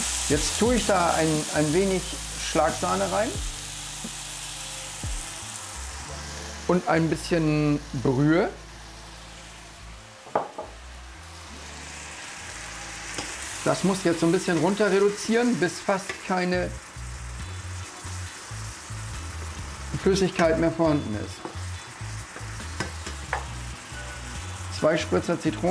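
Food sizzles in a hot frying pan.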